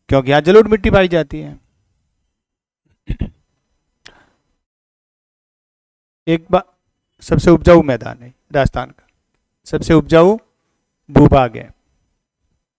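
A middle-aged man lectures through a headset microphone, in short bursts with pauses.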